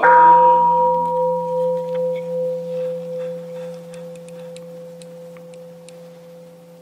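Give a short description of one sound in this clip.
A large temple bowl bell rings once with a deep hum that slowly fades away.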